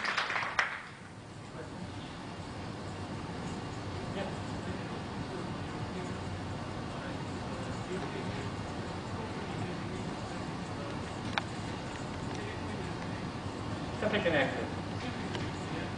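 A man speaks calmly from across an echoing room.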